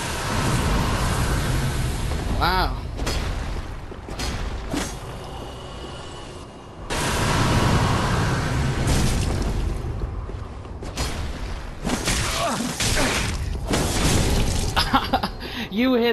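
Metal blades clash and strike hard.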